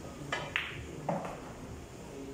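Billiard balls clack together on the table.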